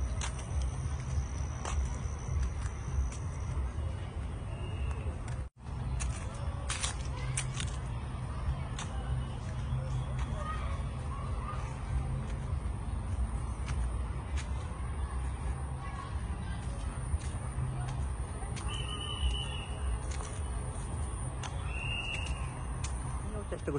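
Footsteps crunch slowly on a gritty path.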